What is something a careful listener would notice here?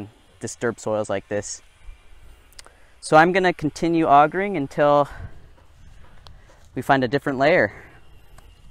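A man speaks nearby outdoors in short bursts.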